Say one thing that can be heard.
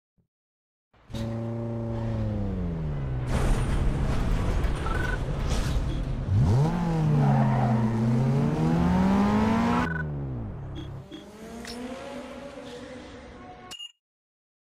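A car engine idles and revs loudly, rising and falling in pitch.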